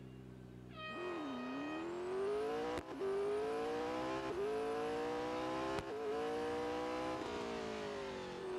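A race car engine roars as the car speeds away, its pitch climbing and dropping with each gear change.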